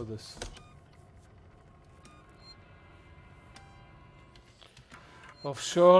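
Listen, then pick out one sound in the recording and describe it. A switch clicks on a phone panel.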